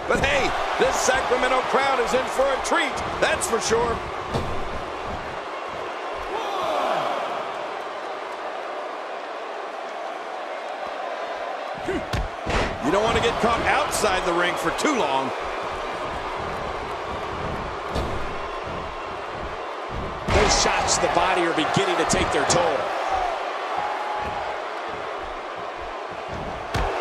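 A crowd cheers and murmurs throughout in a large arena.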